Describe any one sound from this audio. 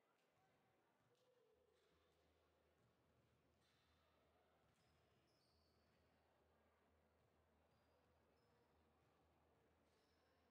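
Players' feet thud as they run.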